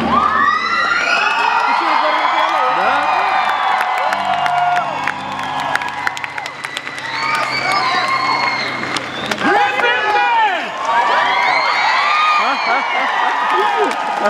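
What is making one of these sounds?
A large crowd cheers and whistles loudly in a big echoing hall.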